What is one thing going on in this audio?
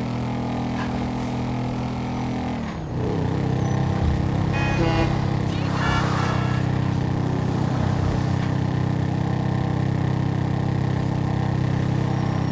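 A small motor engine hums steadily and shifts pitch as it rides along.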